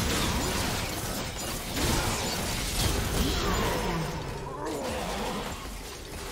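Magic blasts and explosions burst and crackle in a fight.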